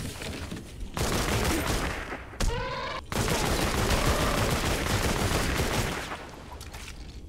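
Guns fire in rapid bursts with loud explosions.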